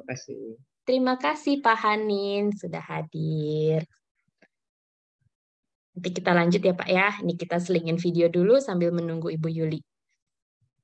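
A young woman talks with a laugh over an online call.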